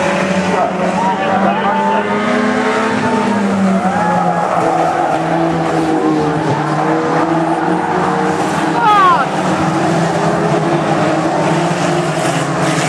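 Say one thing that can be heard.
Several racing car engines roar and rev outdoors, rising and falling in pitch.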